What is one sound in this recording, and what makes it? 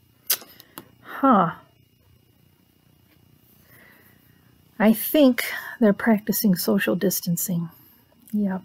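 A woman speaks close by, with animation.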